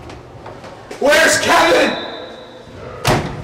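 A heavy door swings open with a loud clunk.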